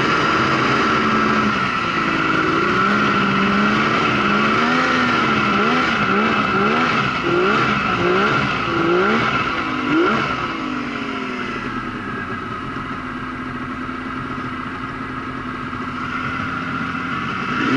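A snowmobile engine drones steadily close by.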